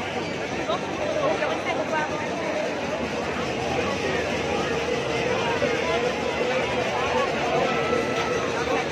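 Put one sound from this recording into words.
A large crowd cheers and chatters loudly outdoors.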